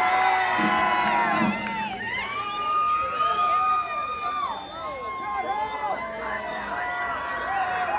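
A man sings loudly into a microphone on an echoing stage.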